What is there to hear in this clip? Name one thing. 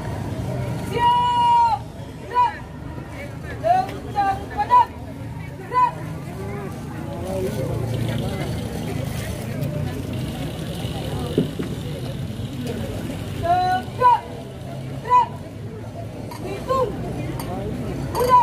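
A young woman shouts sharp commands outdoors.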